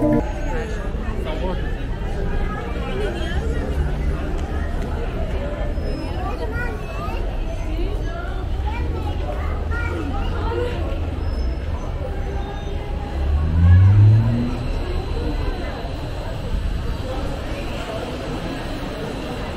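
A crowd of people chatters all around.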